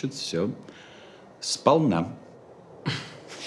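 A middle-aged man speaks calmly and firmly.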